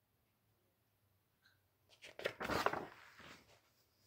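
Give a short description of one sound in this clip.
Pages of a book turn with a rustle.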